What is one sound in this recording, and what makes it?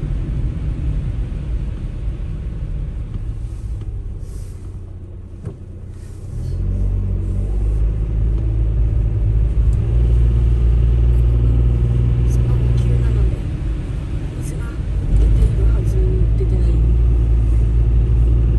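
A car engine hums steadily from inside the car and grows louder as the car speeds up.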